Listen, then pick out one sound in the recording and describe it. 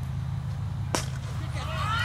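A cricket bat strikes a ball with a sharp crack.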